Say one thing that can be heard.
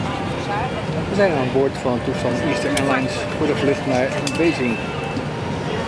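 A young man talks calmly with a flight attendant nearby.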